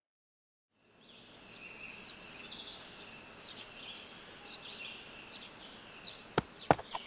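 Birds chirp softly in the distance.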